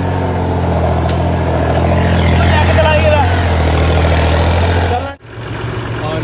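A tractor engine roars loudly up close.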